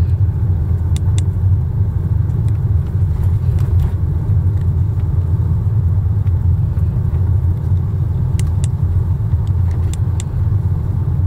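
The car rattles and clicks now and then over bumps.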